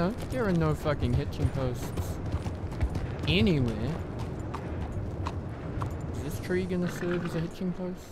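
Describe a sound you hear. Horse hooves clop steadily on a street.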